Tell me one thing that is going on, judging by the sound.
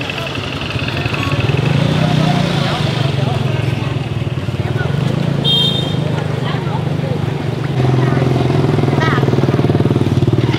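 A motorbike engine hums nearby as it rides past.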